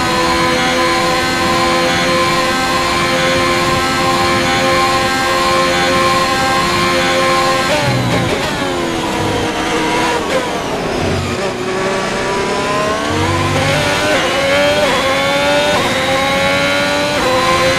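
A racing car engine screams at high revs, drops in pitch under braking, then climbs again as it accelerates.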